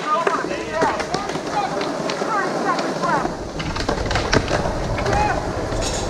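A skateboard clatters onto the ground.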